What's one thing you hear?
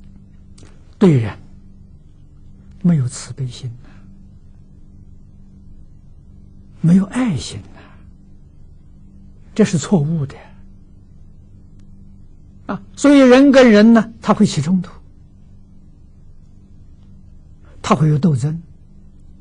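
An elderly man speaks calmly and slowly into a microphone, in short phrases with pauses.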